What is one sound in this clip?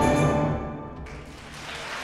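An orchestra and piano end on a loud final chord in a large hall.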